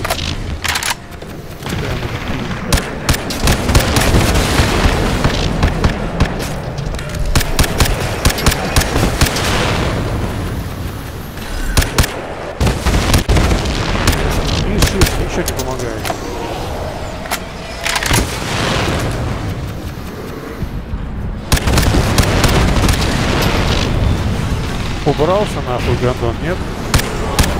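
A rifle fires sharp shots again and again.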